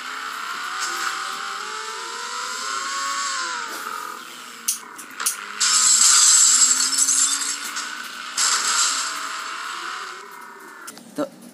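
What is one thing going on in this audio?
A sports car engine roars and revs up and down.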